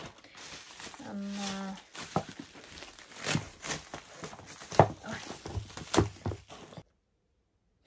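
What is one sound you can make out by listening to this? Bubble wrap crinkles and pops close by.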